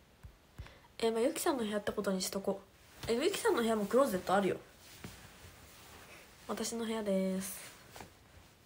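A young woman speaks close to a microphone in short, lively bursts.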